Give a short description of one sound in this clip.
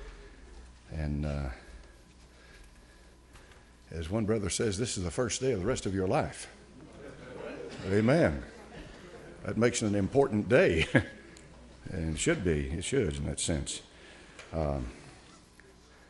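A man preaches with emphasis over a loudspeaker in a large echoing hall, pausing between phrases.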